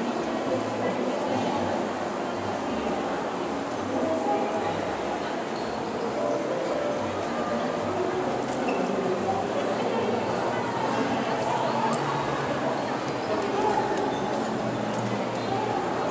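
A crowd of people chatters in a large, echoing hall.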